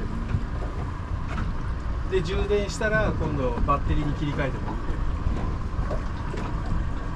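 A boat engine rumbles low and steadily.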